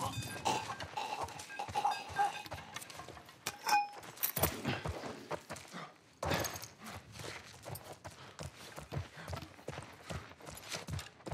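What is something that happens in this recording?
Footsteps crunch on scattered debris.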